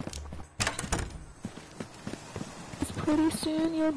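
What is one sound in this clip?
Footsteps thud quickly on wooden boards.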